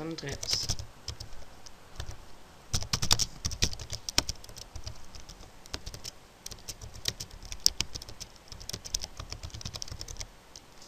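Computer keys click rapidly as someone types.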